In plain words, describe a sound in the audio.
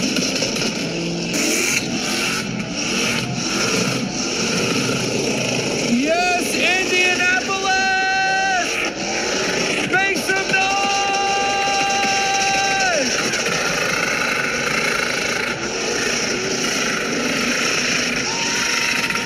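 Tyres screech and squeal as they spin against the track.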